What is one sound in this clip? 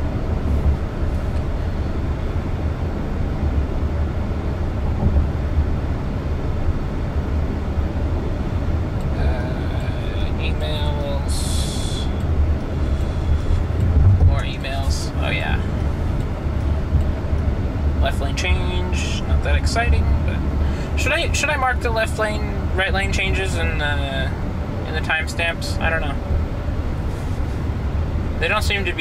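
A car's tyres rumble steadily on the road from inside the car.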